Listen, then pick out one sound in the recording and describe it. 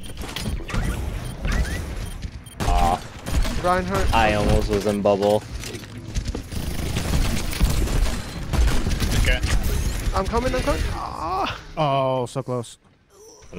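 A heavy gun fires in rapid rattling bursts.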